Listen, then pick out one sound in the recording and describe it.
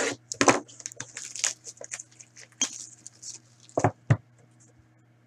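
Foil wrapping crinkles and tears as hands open a pack.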